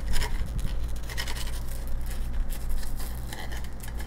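A serving utensil scrapes against a ceramic dish.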